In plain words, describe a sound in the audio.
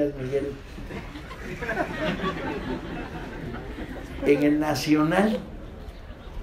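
An older man speaks calmly into a microphone, heard through a loudspeaker.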